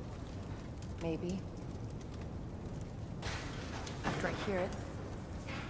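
A young woman answers calmly and coolly.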